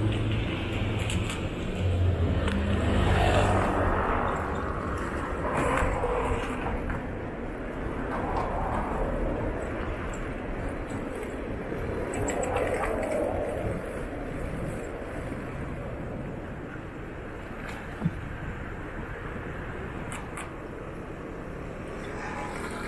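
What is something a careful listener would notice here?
Cars pass by on a city street.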